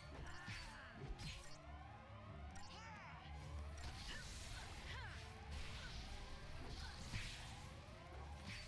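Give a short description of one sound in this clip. Swords clash and magic blasts crackle in a fight.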